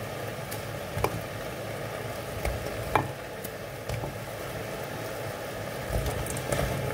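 A small hard object clicks and taps close by.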